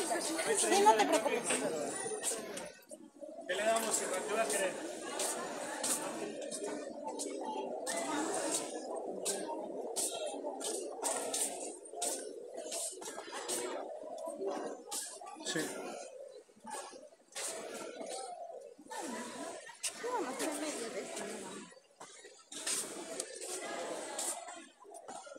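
Men and women chatter in a busy crowd nearby.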